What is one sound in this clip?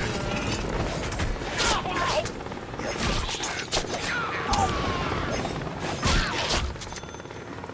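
Blades slash and strike in a fast fight.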